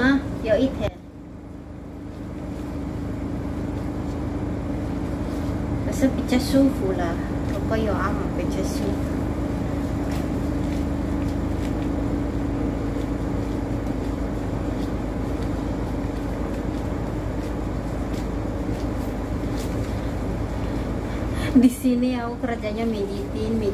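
A woman talks calmly close by.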